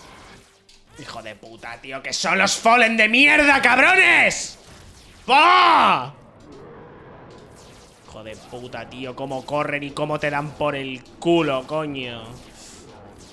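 A young man speaks loudly and excitedly into a microphone, at times shouting.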